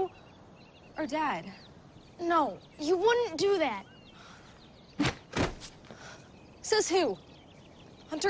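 A young girl speaks with animation.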